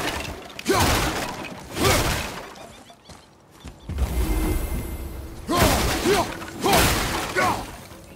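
Wooden crates smash and splinter loudly.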